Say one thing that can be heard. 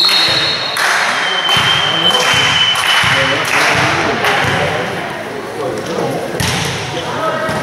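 A volleyball is struck hard with a slap.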